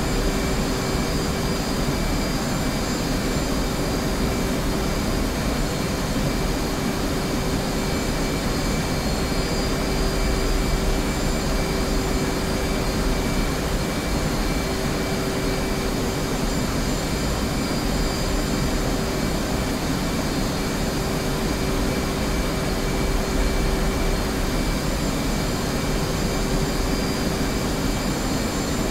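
A jet engine roars steadily with a constant whine.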